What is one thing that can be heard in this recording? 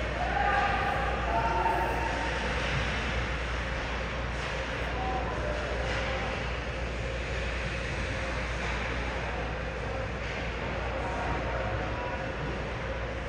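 Players shout in a large echoing rink.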